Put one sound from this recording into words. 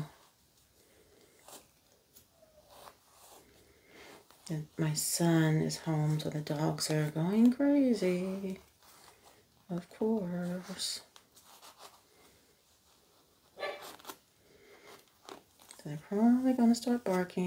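Paper rustles and crinkles in a woman's hands.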